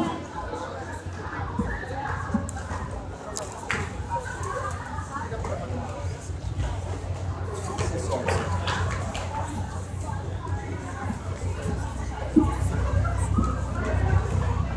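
Live band music plays loudly over speakers.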